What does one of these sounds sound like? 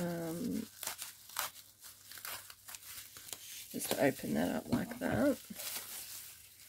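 Plastic bubble wrap crinkles and rustles as hands handle it.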